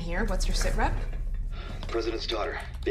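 A woman speaks through a phone.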